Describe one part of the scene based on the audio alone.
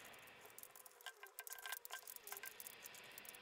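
An ice slab knocks lightly against a metal tray.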